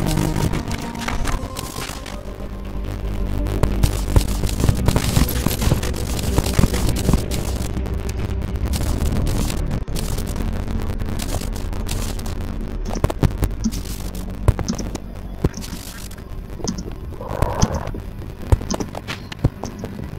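Game music plays steadily.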